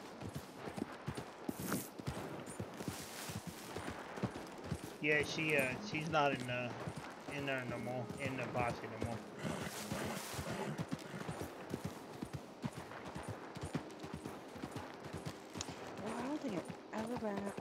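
Horse hooves thud steadily on soft ground.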